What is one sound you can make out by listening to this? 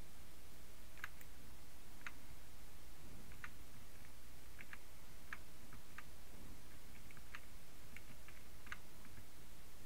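Footsteps tap faintly on stone.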